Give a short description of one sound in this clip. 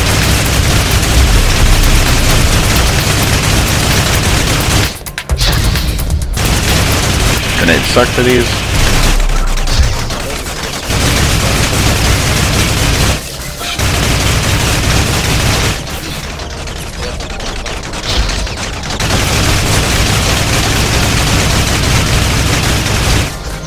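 A gun fires rapidly and loudly.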